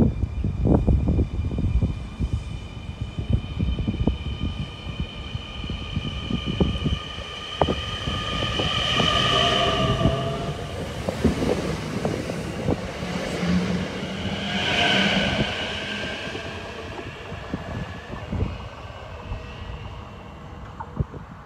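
A train's motors whine, rising and falling in pitch.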